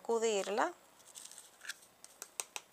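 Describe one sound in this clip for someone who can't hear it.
A sheet of paper rustles and scrapes.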